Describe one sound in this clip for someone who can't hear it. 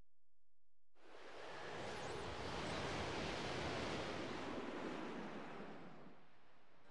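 A whirlwind roars with rushing wind.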